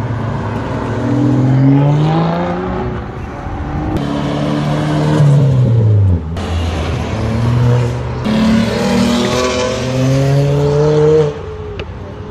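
Tyres hiss on the road as cars pass close by.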